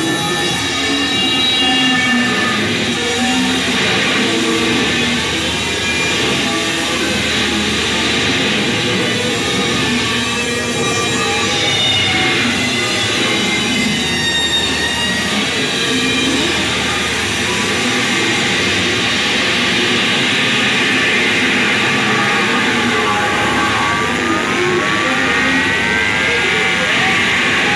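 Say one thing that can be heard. An electric guitar plays droning, textured notes through an amplifier.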